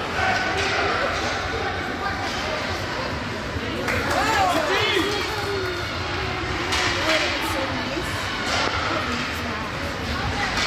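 Spectators cheer and call out in an echoing rink.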